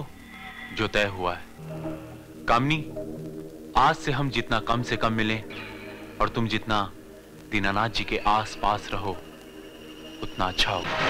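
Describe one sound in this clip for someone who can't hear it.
A young man speaks softly and earnestly, close by.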